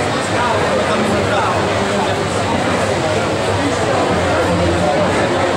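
Men and women chatter in a large echoing hall.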